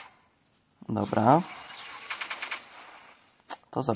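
A magical blast roars and shimmers.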